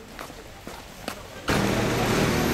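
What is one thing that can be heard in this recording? Footsteps shuffle on a paved path outdoors.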